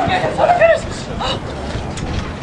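A woman screams loudly nearby outdoors.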